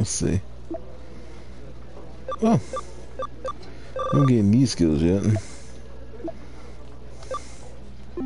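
Short electronic menu blips and clicks sound in quick succession.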